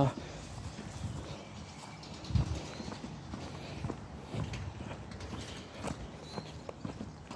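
A young man talks casually close to the microphone.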